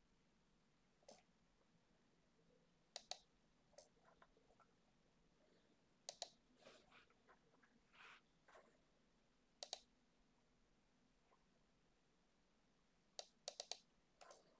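Keys on a computer keyboard click in short bursts now and then.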